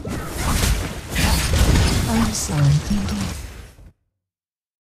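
Blades swish and clash in a fierce fight.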